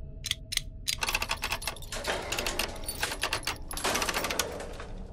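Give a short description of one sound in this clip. A wooden wheel creaks and rattles as it turns.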